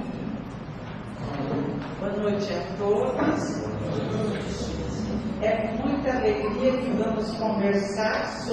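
An elderly woman speaks through a microphone and loudspeaker.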